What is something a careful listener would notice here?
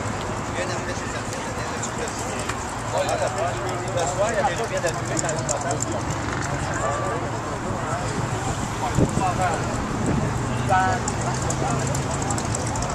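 Men and women chat in the background outdoors.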